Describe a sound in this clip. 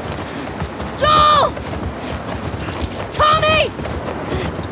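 A young woman shouts loudly, calling out.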